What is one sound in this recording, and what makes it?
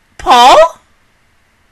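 A young woman sings a loud, brief note close to a microphone.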